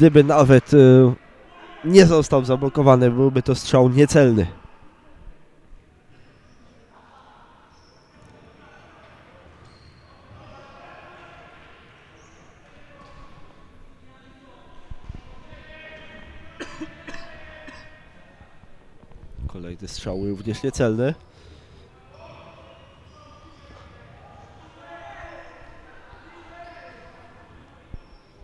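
A ball is kicked with dull thuds on a hard floor.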